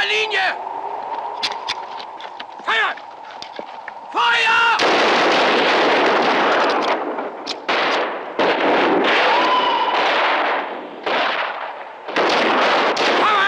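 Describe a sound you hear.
Rifle shots crack out sharply.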